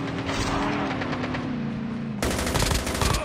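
A vehicle engine roars.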